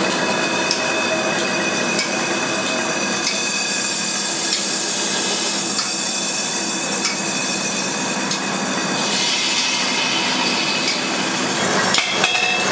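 A metal spinning machine whirs and hums steadily.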